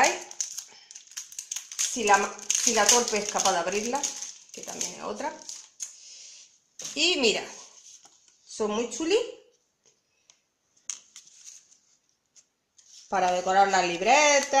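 A plastic bag crinkles close by.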